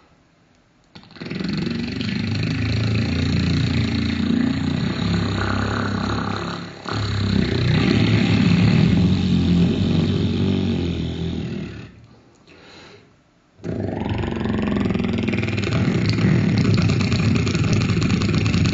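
A man plays a harmonica through a microphone.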